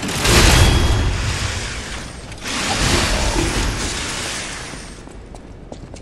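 A heavy metal weapon crashes down with a loud rumbling impact.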